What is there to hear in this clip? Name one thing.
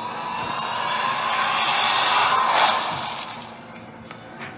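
A magic blast swells with a rising whoosh and bursts, then fades.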